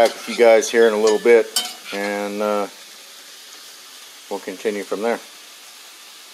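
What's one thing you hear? A metal spatula scrapes and stirs food in a cast-iron pan.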